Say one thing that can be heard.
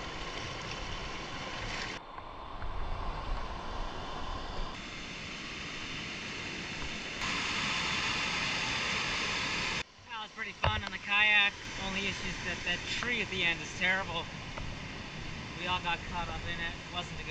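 A river rushes over rocks nearby.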